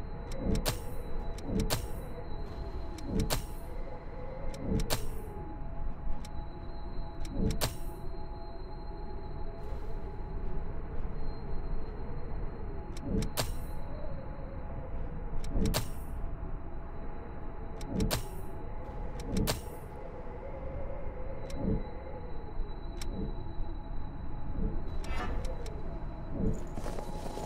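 Short electronic clicks sound now and then, each followed by a soft whoosh.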